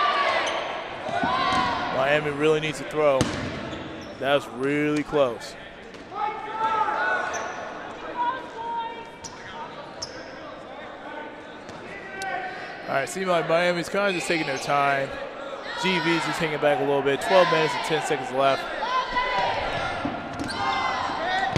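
Young men shout and call out to each other in a large echoing hall.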